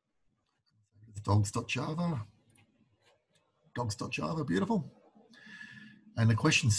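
A man speaks calmly close to a microphone, as on an online call.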